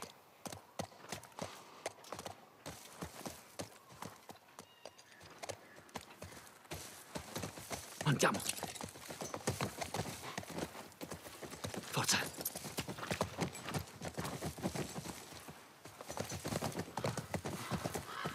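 A horse's hooves clop steadily on hard ground.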